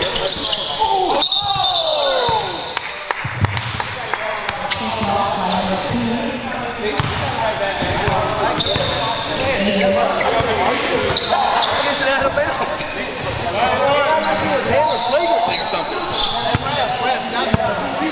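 Young men talk and call out across a large echoing gym.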